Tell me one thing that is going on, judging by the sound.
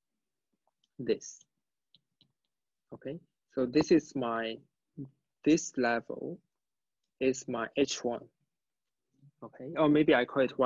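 A young man speaks calmly and explains something, heard close through a microphone.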